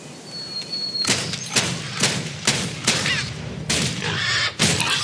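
Sharp magical blasts crack and bang in quick succession.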